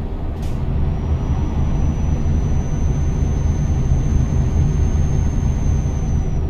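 A truck engine rumbles steadily as it drives along.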